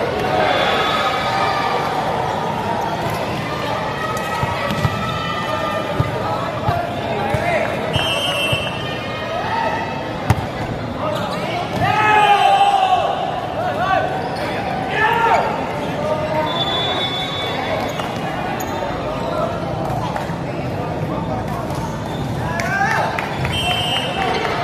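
A crowd of young men shout and cheer in a large echoing hall.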